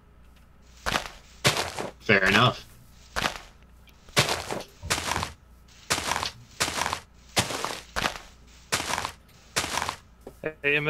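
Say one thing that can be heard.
Leaves crunch in short bursts as blocks are broken.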